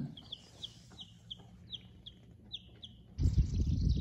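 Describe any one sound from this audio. A chick peeps softly and repeatedly.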